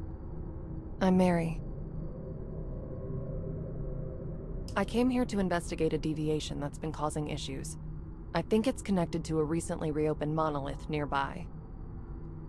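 A second young woman answers calmly.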